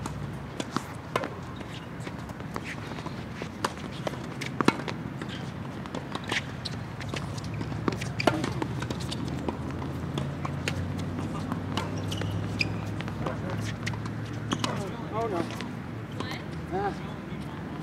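Tennis balls bounce on a hard court.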